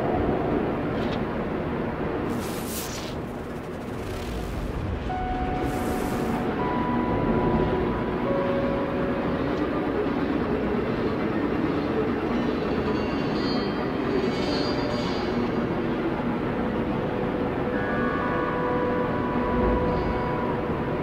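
A spacecraft engine hums steadily in flight.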